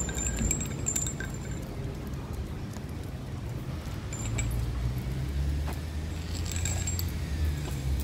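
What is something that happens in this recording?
Metal tags on dog harnesses jingle lightly.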